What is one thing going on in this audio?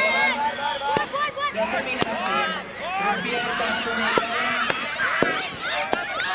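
Balloons pop sharply.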